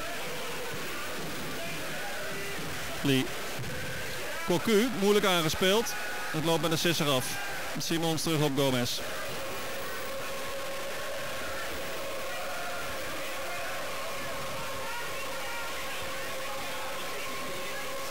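A large crowd murmurs and chants steadily in an open stadium.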